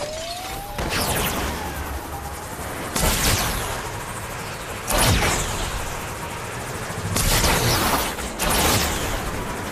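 Rushing whooshes of energy surge in bursts.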